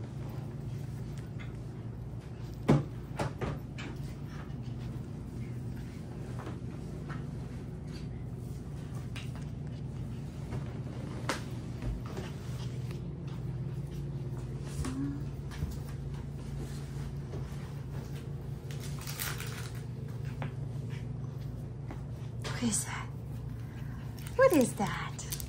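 Small puppies scuffle and tumble together on a soft floor.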